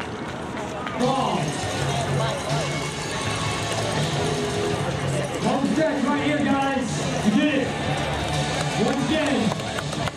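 A crowd of spectators cheers and claps outdoors.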